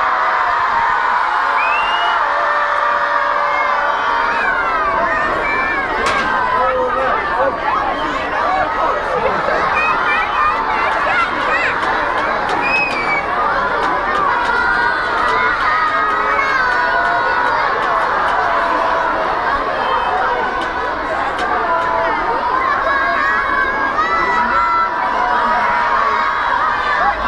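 A large outdoor crowd of children and adults shouts, squeals and chatters excitedly.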